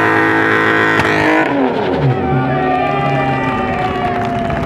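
A straight-six car engine drops from high revs.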